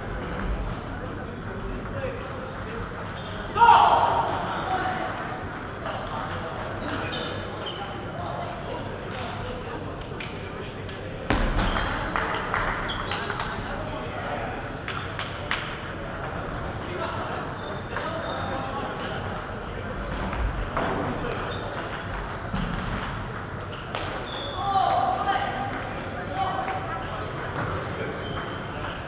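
A table tennis ball clicks back and forth between paddles and table.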